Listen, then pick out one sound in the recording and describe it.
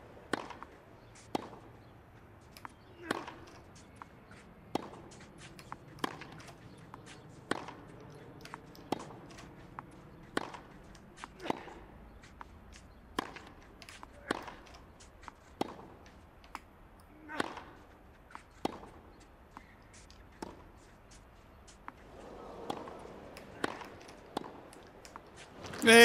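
A tennis ball bounces on a clay court with soft thuds.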